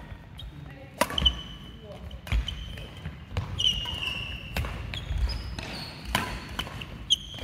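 Sports shoes squeak on a hard floor.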